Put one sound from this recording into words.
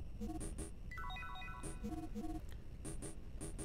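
Short electronic menu beeps chirp in quick succession.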